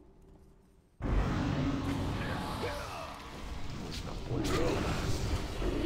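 Magic spells crackle and clash in a fight.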